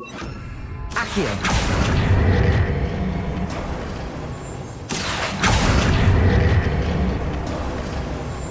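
A magic spell crackles and bursts with a loud whoosh.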